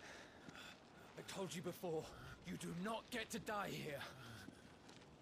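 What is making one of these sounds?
A man speaks forcefully in a deep voice.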